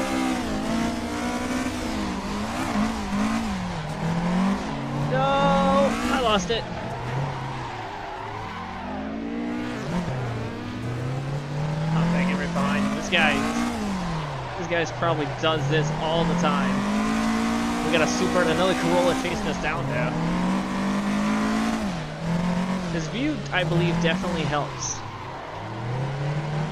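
A racing car engine revs up and down loudly.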